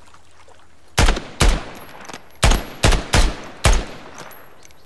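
A rifle fires several loud single shots that echo outdoors.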